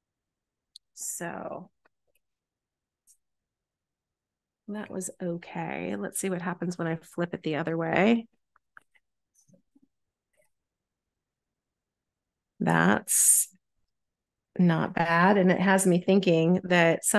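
An older woman talks calmly over an online call.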